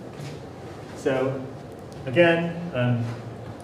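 A man speaks calmly nearby, slightly muffled.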